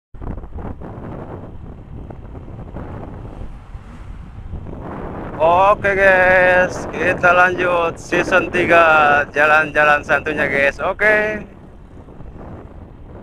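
Wind rushes past a moving motorbike.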